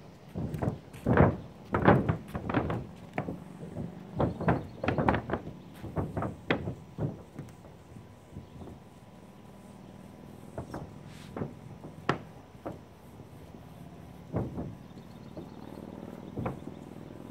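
A paint roller rolls and scrapes across a roof surface.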